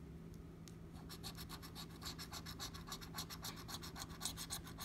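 A coin scrapes rapidly across a scratch card.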